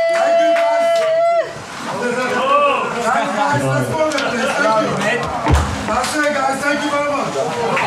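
Electronic dance music plays loudly over speakers.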